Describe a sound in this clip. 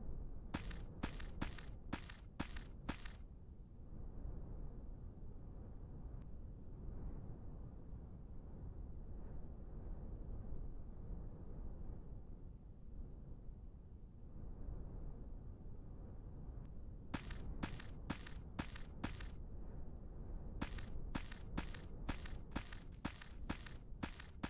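Footsteps tap on hard ground at a quick, even pace.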